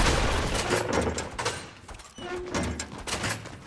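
A door swings shut with a thud.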